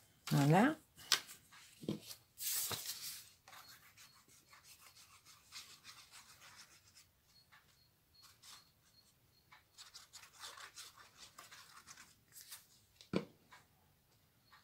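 Paper rustles and crinkles in hands.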